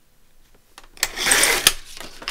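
A paper trimmer blade slices through paper.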